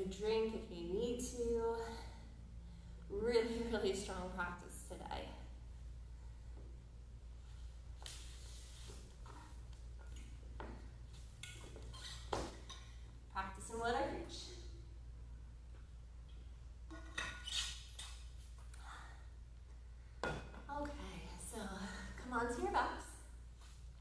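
A woman speaks calmly, close by, in an echoing room.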